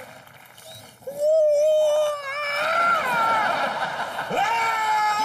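A young man sings loudly with drawn-out notes.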